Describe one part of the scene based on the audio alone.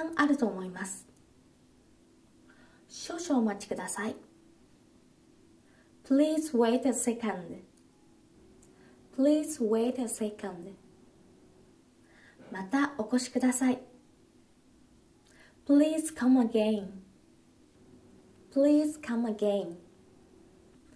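A young woman speaks calmly and clearly in short phrases, close by, with pauses between them.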